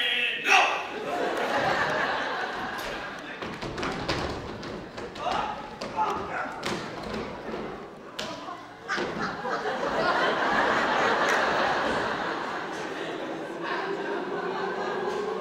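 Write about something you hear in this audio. A crowd of men and women chatter and cheer together.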